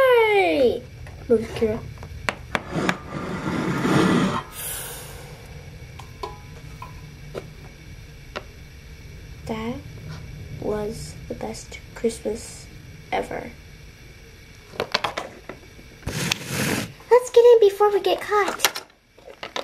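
A small plastic toy taps and scrapes on a hard surface.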